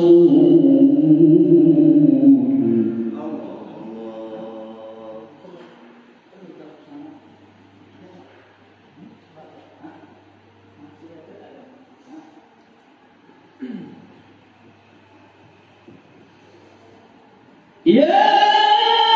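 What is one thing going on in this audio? A man chants loudly into a microphone, echoing through loudspeakers.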